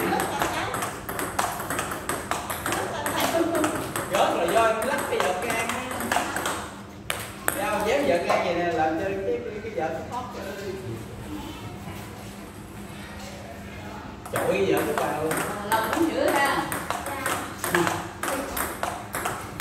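A table tennis ball clicks quickly back and forth off paddles and a table indoors.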